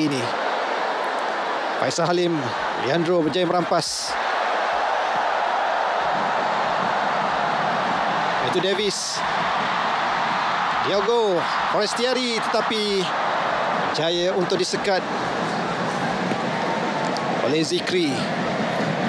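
A large crowd cheers and murmurs steadily in a stadium.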